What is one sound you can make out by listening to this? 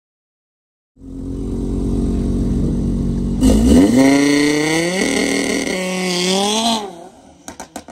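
A car engine idles loudly close by, revs hard and roars off.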